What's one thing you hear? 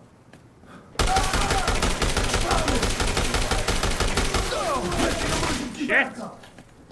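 A gun fires in rapid bursts of loud shots.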